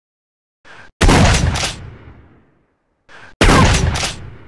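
A pistol fires with loud, echoing bangs.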